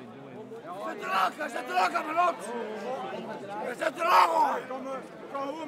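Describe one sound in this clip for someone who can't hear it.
Men in a crowd shout loudly.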